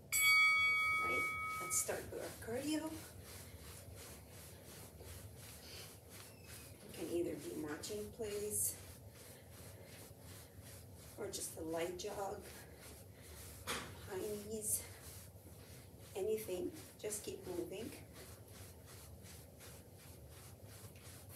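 Feet thud softly on carpet as a woman jogs in place.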